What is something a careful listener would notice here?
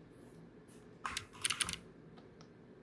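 Keyboard keys click a few times.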